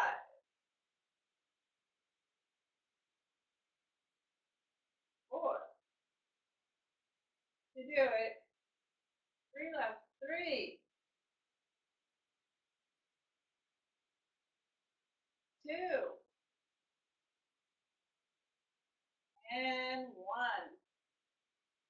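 A woman speaks in short bursts nearby.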